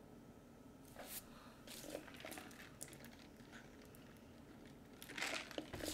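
A young man sips a drink through a straw.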